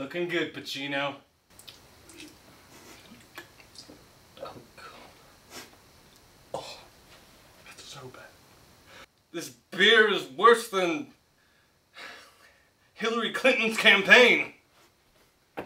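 A young man sings loudly with strained, drawn-out notes.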